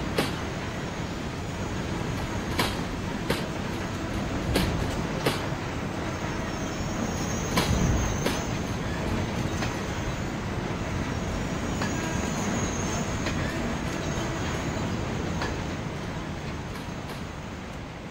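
A freight train rolls past with a steady low rumble.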